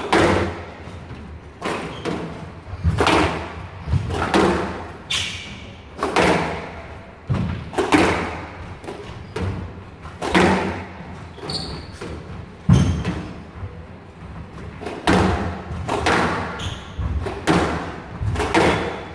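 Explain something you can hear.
A squash ball smacks hard against the walls, echoing in a hall.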